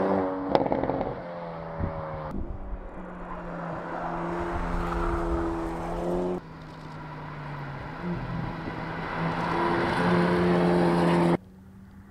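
A car engine revs hard and changes gear as the car speeds past.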